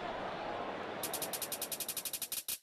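Quick electronic taps click in a fast, even rhythm.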